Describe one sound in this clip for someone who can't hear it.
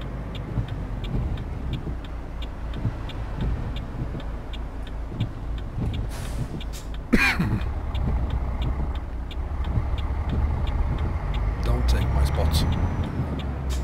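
A turn signal ticks in a steady rhythm.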